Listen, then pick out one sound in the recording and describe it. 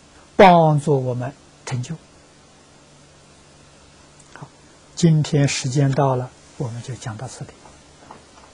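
An elderly man speaks calmly and warmly into a microphone, in short phrases.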